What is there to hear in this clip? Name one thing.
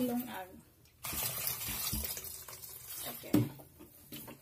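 Water pours from a plastic bottle into a metal pot.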